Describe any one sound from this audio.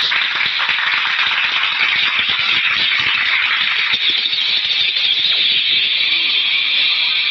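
An audience applauds loudly with dense clapping.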